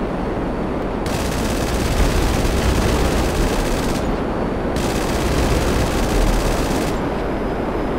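A jet engine blasts louder with a rushing hiss.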